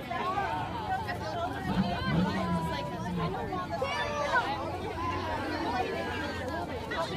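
A crowd of people talks and chatters close by outdoors.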